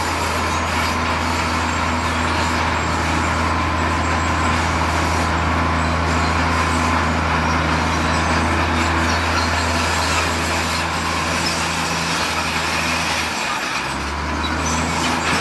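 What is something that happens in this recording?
A bulldozer blade scrapes and pushes rocks and dirt.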